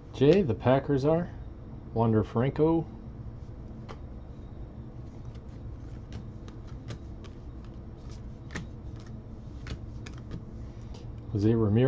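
Trading cards flick and shuffle softly between hands.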